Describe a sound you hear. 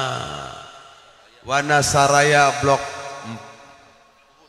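An elderly man sings loudly into a microphone, with a strong echo.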